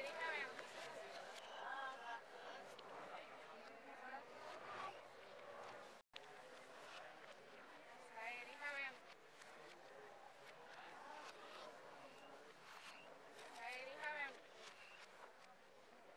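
Paper rustles as ballots are unfolded.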